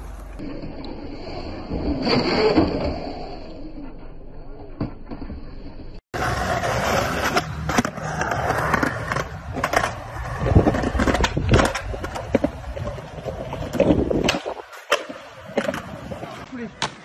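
Skateboard wheels roll over concrete.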